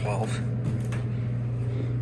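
A finger clicks an elevator call button.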